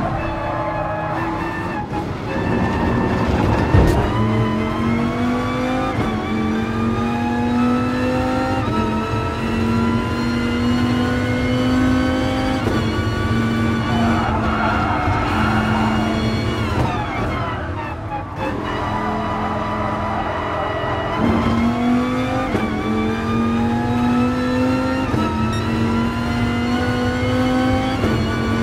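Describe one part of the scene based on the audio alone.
A racing car engine roars loudly, rising in pitch through each gear and dropping at every shift.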